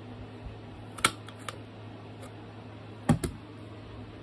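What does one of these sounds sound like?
A hand punch clicks sharply as it cuts through card stock.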